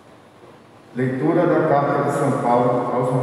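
A young man speaks calmly through a microphone and loudspeakers in a large echoing hall.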